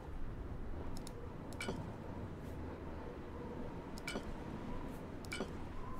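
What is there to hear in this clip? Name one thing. Short chiming clicks sound as menu items are selected.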